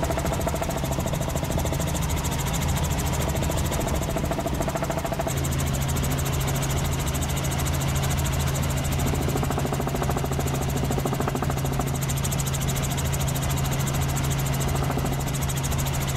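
A helicopter engine roars steadily with fast thudding rotor blades, heard from inside the cabin.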